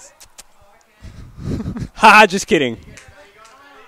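A young man talks animatedly into a headset microphone.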